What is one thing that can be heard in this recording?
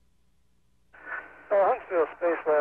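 A man speaks through a microphone.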